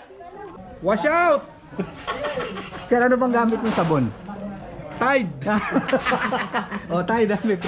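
A young man talks and laughs cheerfully close by.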